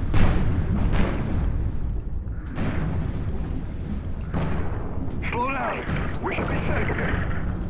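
Deep water rumbles and churns steadily.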